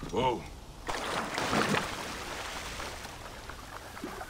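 Water splashes loudly as something plunges in.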